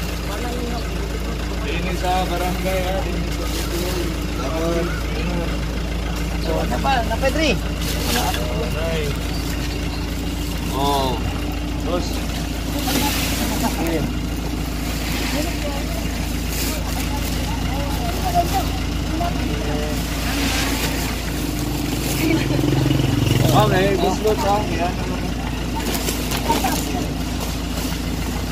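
Men and women talk nearby outdoors.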